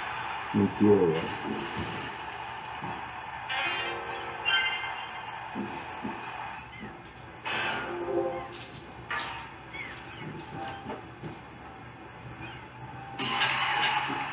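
Video game chimes and sound effects play from a television speaker.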